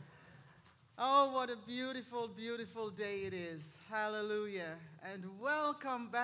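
A woman sings into a microphone in a large echoing room.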